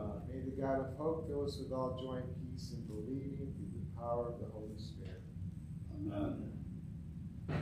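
A man reads aloud calmly through a microphone in a large echoing hall.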